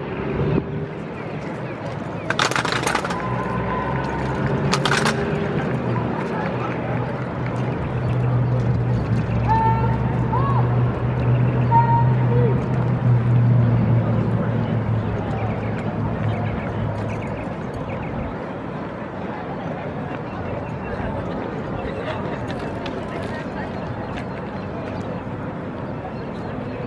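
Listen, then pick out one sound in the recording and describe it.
A squad marches in step on pavement some distance away.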